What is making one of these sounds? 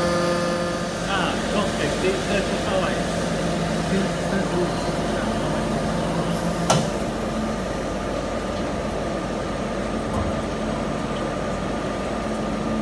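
A machine clatters and clanks rhythmically.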